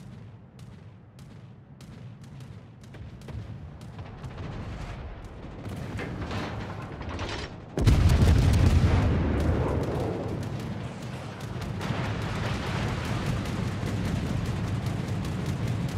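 Shells explode with heavy blasts close by.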